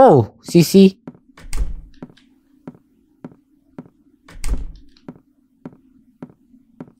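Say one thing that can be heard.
Footsteps tap at a steady, even pace.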